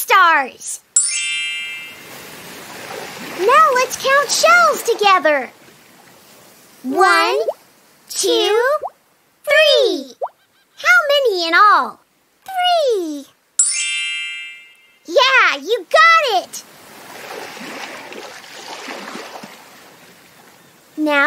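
Waves rush and wash onto a shore.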